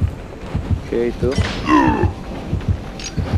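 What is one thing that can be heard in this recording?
A young man talks briefly into a microphone.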